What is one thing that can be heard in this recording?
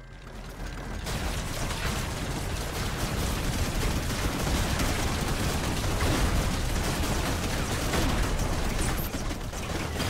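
A laser weapon fires a steady, buzzing beam.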